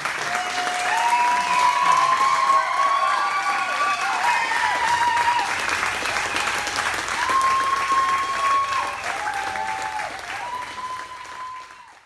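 Audience members whistle shrilly.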